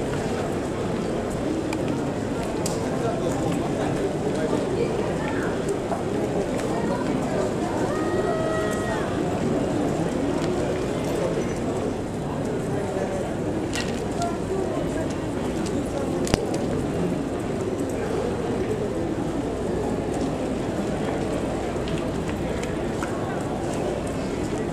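Horses' hooves thud softly on the ground as they are led past.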